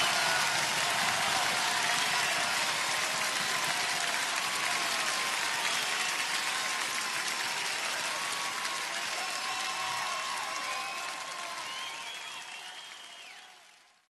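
A large crowd cheers and whistles loudly in a big echoing hall, then slowly fades.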